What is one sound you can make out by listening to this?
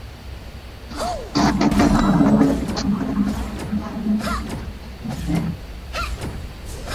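Game spell effects whoosh and clash in a fight.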